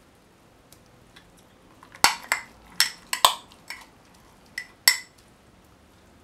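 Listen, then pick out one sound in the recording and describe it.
Thick paste is spooned and scraped into a glass jar.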